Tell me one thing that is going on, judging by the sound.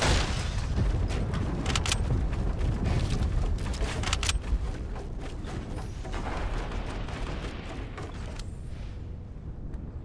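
Wooden walls clatter quickly into place as they are built.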